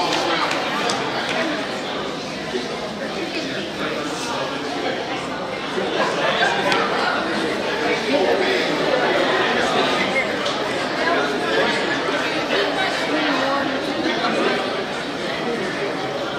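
Young women on a team talk and chatter close by in a large echoing gym.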